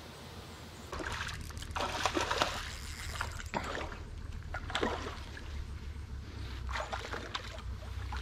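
A fish splashes and thrashes in the water close by.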